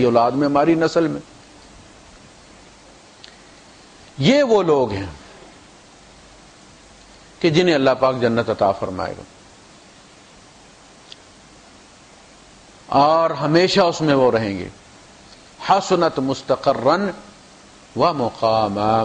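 A man chants in a melodic voice through a microphone, in phrases with pauses between them.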